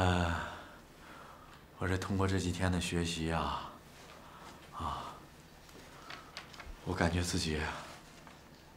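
A middle-aged man speaks nearby with feeling, in short bursts.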